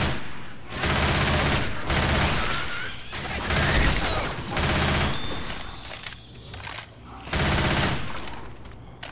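A submachine gun fires in loud rapid bursts.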